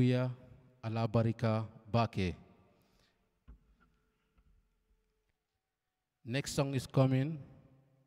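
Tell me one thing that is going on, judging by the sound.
A man sings closely into a microphone in long, wavering phrases, with pauses between them.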